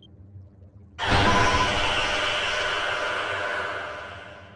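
A loud rushing whoosh bursts out and slowly fades.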